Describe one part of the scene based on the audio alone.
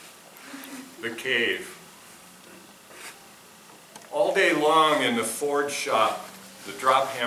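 An elderly man reads aloud calmly into a microphone.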